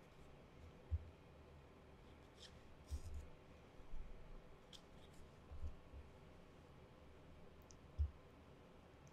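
Glossy paper pages rustle and slide against each other.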